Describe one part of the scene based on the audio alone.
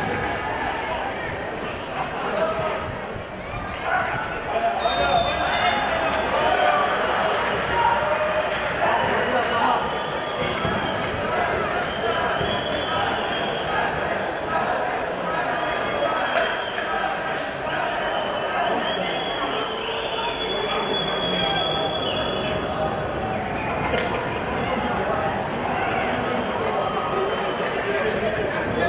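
A crowd of spectators chants and cheers steadily in a large open stadium.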